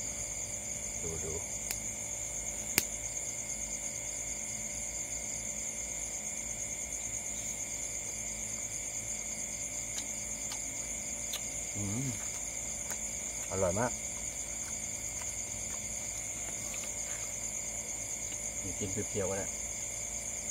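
A young man speaks in short bursts close by.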